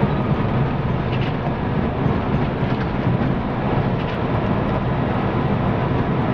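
A bus engine drones steadily as the bus drives along.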